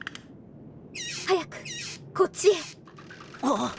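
A girl calls out urgently.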